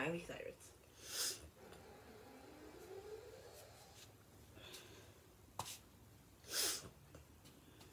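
A young woman breathes in sharply into a microphone.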